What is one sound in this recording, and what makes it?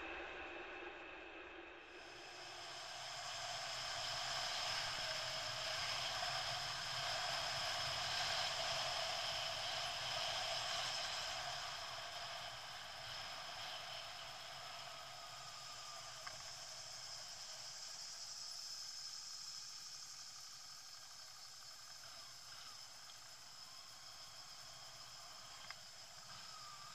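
Tyres hum on asphalt.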